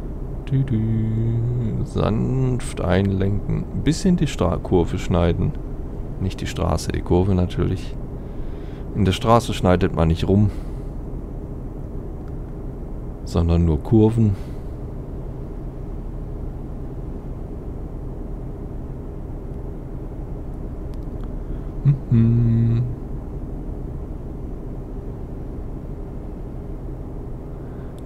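A truck engine hums steadily while driving along a road.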